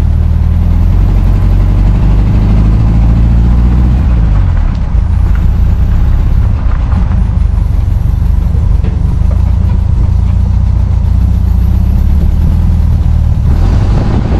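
Tyres roll over wet ground.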